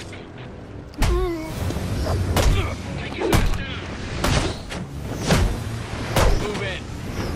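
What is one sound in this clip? Punches and kicks land with sharp smacks in a brawl.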